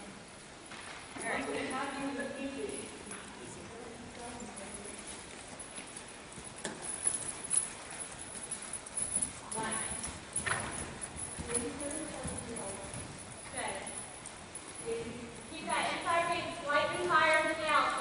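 A horse's hooves thud softly on sand as it trots.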